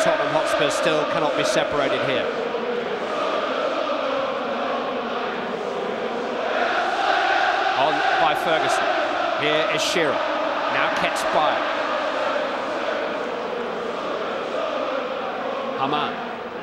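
A large stadium crowd chants and roars steadily throughout.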